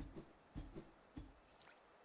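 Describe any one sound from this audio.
A blade slashes with a sharp swish.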